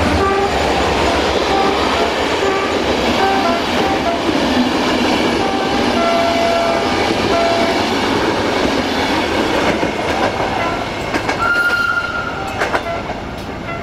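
A passing train roars and clatters close by.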